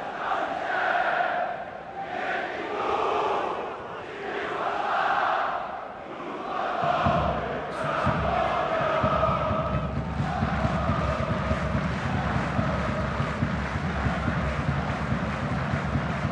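A large crowd chants and sings loudly in a stadium.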